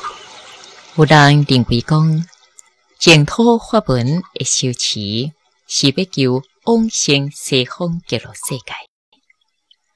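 A woman speaks calmly and steadily, close to a microphone.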